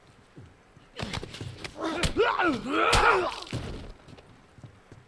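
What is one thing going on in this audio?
Heavy blows land in a close scuffle.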